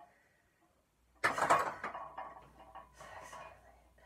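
A barbell clanks as it is set down on a rack.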